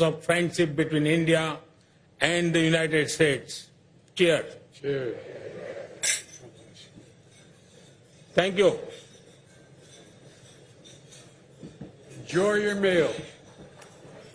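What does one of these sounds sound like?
An elderly man speaks into a microphone in short bursts.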